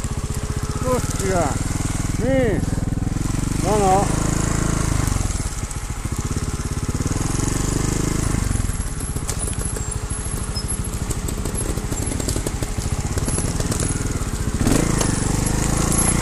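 A motorcycle engine putters and revs unevenly at close range.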